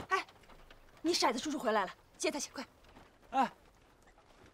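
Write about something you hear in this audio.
A young man calls out with animation.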